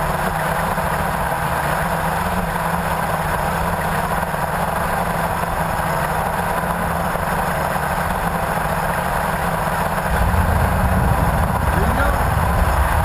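A drone's propellers buzz with a steady, high whine.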